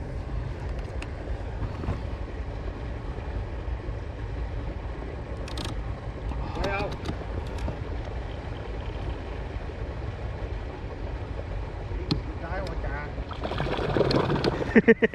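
An electric boat motor hums steadily.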